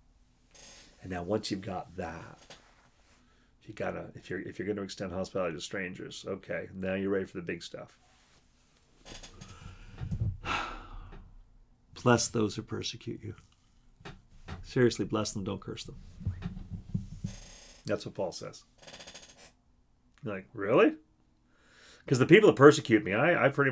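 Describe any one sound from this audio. An older man talks calmly and close up, pausing often.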